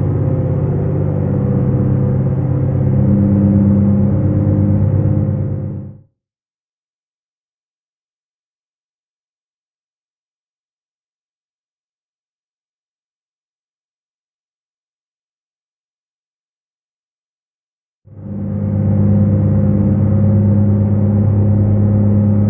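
A simulated diesel truck engine drones from inside the cab while cruising.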